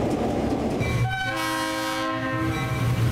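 A locomotive horn blows loudly and steadily.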